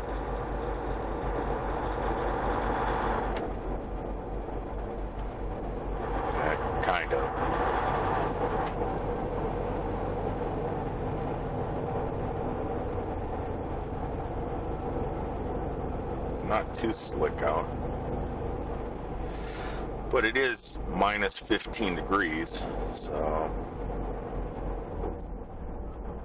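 A large vehicle's engine hums steadily while driving.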